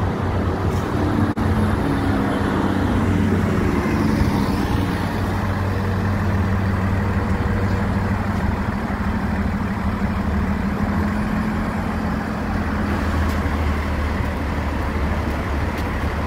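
A bus engine hums and rumbles as the bus pulls away close by.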